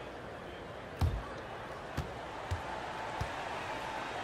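A basketball bounces on a hardwood floor a few times.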